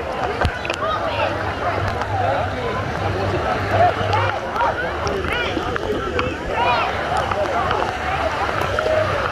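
Many people talk and shout at once in a busy crowd.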